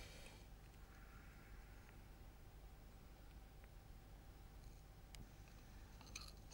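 A piece of flint clicks softly as it is turned over in the hands.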